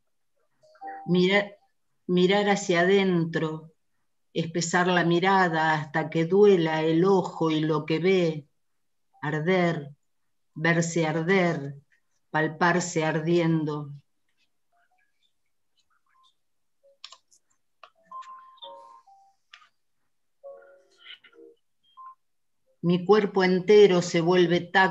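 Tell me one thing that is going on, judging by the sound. A woman reads aloud calmly over an online call.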